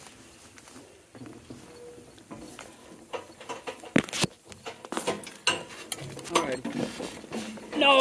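Harness buckles and rings jingle and clink.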